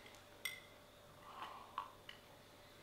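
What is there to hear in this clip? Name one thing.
A man sips a drink from a mug.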